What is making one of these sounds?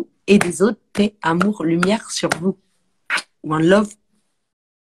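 A woman speaks with animation over a phone microphone.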